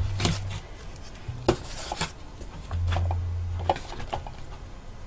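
Metal engine parts clink and knock against each other.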